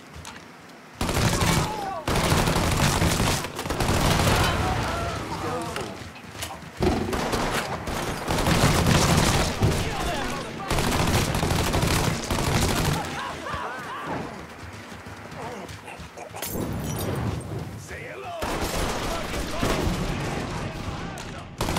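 Machine guns fire in rapid, loud bursts.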